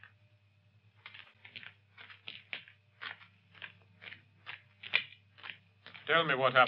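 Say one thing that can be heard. Footsteps crunch slowly on dry ground.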